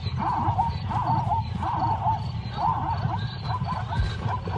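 A zebra brays and barks in short bursts.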